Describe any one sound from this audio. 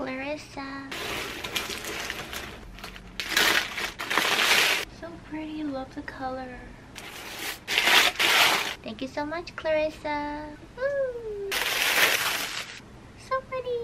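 Tissue paper crinkles and rustles loudly as a gift is unwrapped.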